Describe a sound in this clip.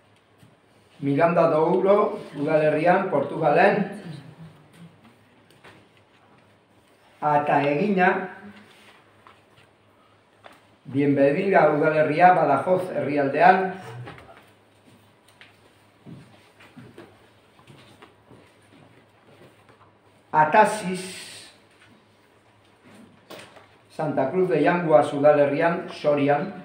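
A middle-aged man speaks calmly in bursts, with pauses between phrases.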